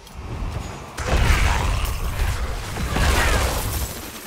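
Heavy magic blasts and impacts crash and rumble.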